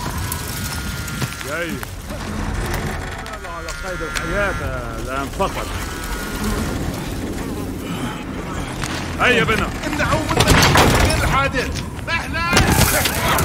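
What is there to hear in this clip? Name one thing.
A man groans and shouts close by.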